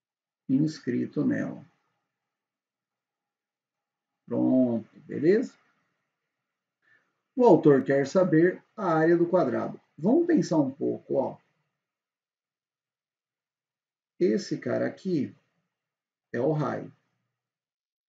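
A young man speaks calmly and clearly into a close microphone, explaining in short bursts with pauses.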